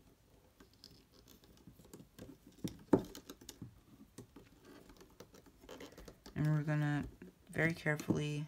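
Rubber bands click and snap against a plastic loom.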